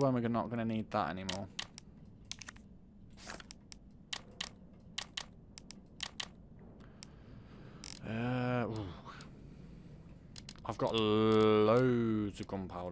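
Short soft clicks tick again and again as menu items are selected.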